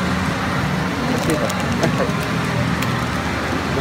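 A snack packet crinkles in hands.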